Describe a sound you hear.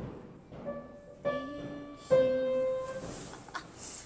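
A piano plays a few notes up close.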